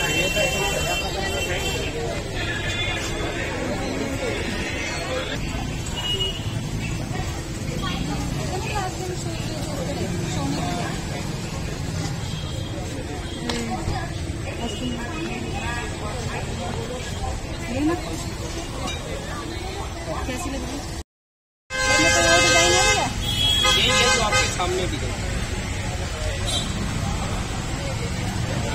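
A crowd of people chatters all around in a busy outdoor market.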